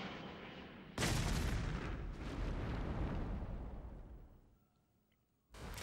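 A missile explodes with a loud blast that fades away.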